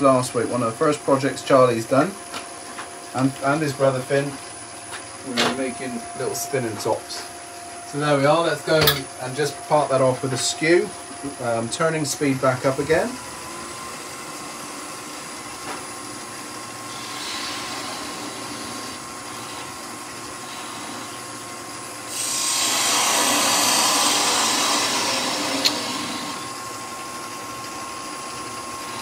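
A wood lathe hums steadily.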